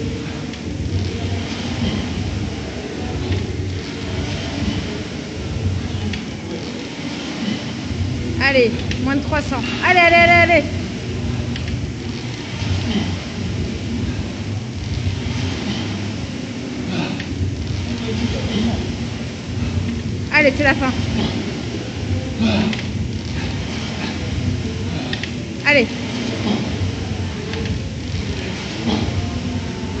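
A rowing machine's seat rolls back and forth on its rail.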